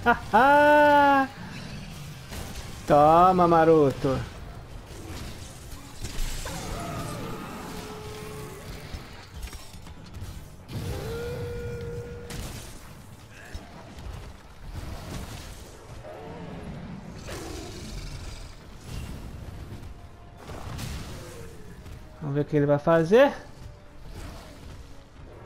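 Heavy blows and crashes thud and clang.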